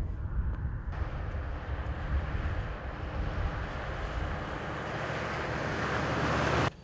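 A car drives closer along a wet road, its tyres hissing louder.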